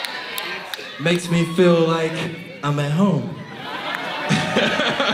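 A young man sings loudly into a microphone over a loudspeaker.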